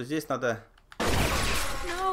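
A shotgun fires a loud blast.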